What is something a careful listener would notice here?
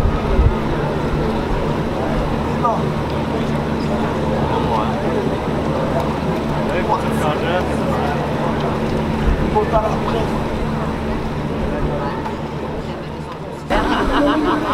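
A crowd murmurs outdoors in a street.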